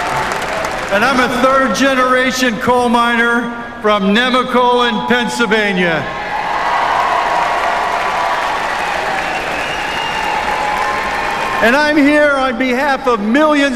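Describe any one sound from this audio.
A middle-aged man speaks loudly into a microphone over loudspeakers.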